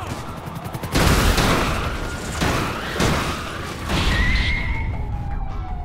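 Explosions boom loudly overhead.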